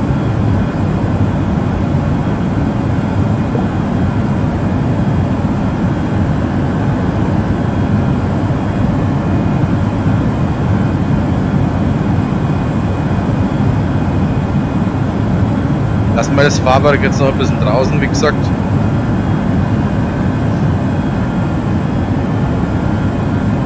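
A jet engine drones low and steady.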